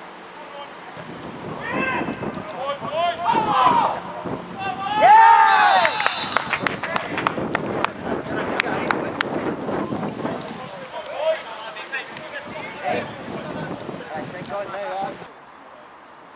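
Spectators cheer and shout outdoors.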